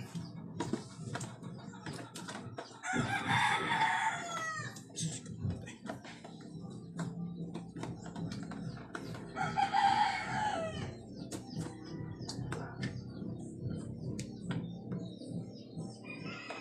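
Metal scissors click and tap against a plastic container.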